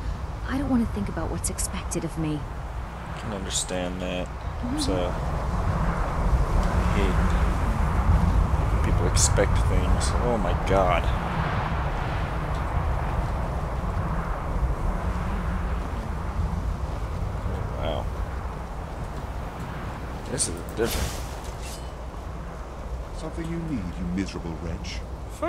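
Strong wind howls steadily outdoors.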